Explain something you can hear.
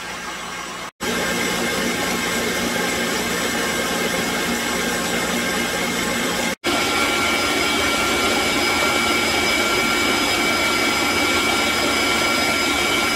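An electric stand mixer whirs steadily as it beats batter.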